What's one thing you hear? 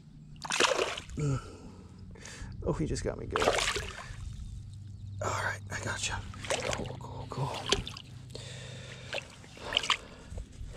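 Water splashes and sloshes in shallow water.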